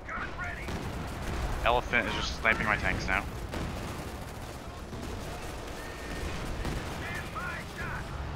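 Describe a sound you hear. Distant explosions rumble with low, dull booms.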